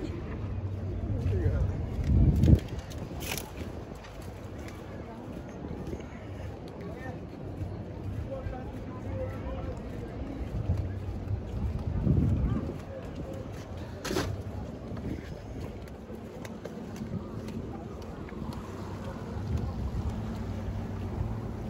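Wind blows outdoors in gusts.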